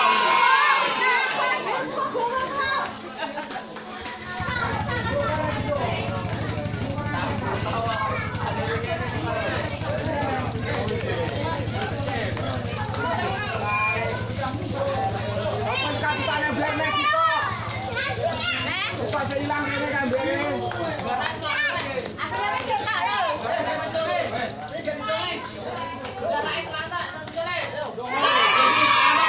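A crowd of men, women and children talk and call out together outdoors.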